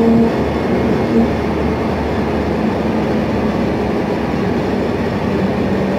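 Tyres roll and rumble on the road beneath a moving bus.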